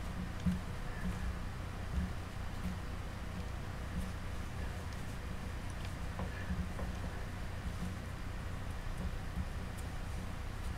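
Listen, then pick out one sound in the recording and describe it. Fingers softly press and rub modelling clay with faint taps.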